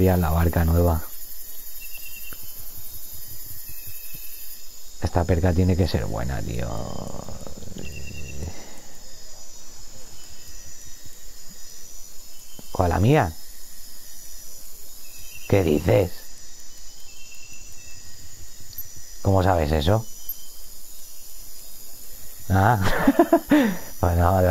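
A fishing reel clicks steadily as its line is wound in.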